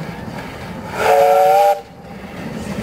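A steam whistle blows briefly.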